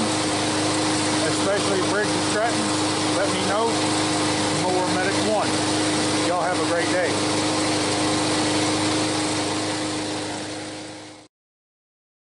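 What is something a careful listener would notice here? A lawn mower engine runs steadily nearby, then fades out.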